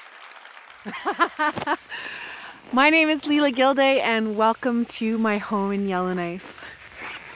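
A young woman speaks brightly and close by, outdoors.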